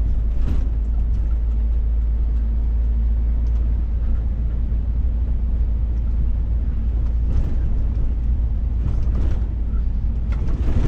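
Tyres hum on an asphalt road.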